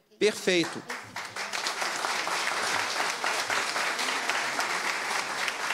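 A group of people applauds.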